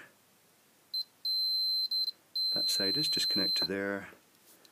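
A multimeter beeps with a steady high tone in short bursts.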